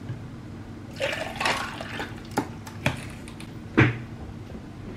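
Ice cubes clink against a glass.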